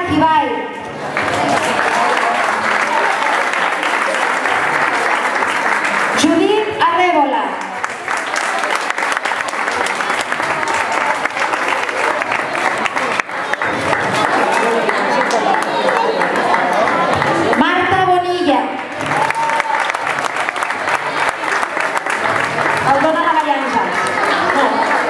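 Children in the crowd cheer and shout excitedly.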